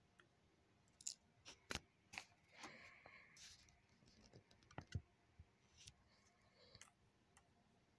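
Paper rustles and crinkles as a notebook page is handled.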